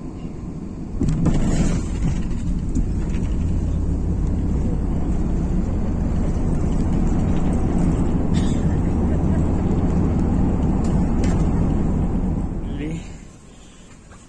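Jet engines roar loudly as an airliner brakes, then quickly die down.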